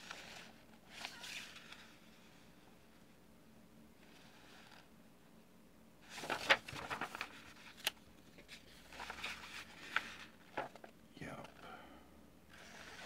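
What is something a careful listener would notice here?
Paper pages rustle and flip as a booklet is handled.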